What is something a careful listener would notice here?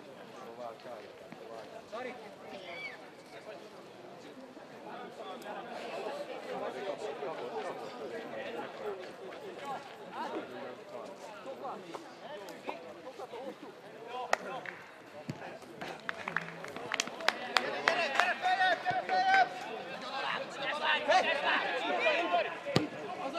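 Men shout to each other outdoors at a distance.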